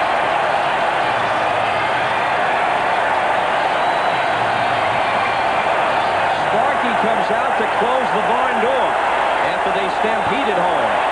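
A large crowd roars steadily in an open stadium.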